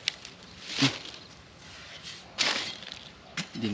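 A hoe chops into soil.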